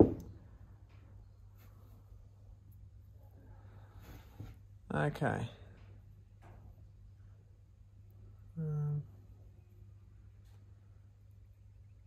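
A small metal part clicks and scrapes softly between fingers.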